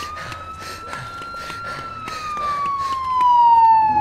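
Quick footsteps run along a narrow alley.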